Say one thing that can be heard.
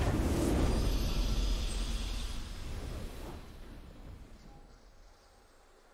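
A triumphant victory fanfare plays and slowly fades.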